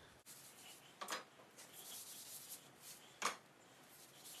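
Wooden arrow shafts click and tap as they are handled.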